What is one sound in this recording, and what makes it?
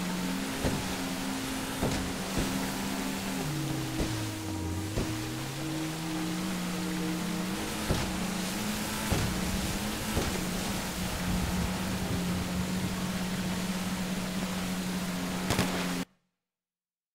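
A motorboat engine roars at speed, its pitch rising and falling.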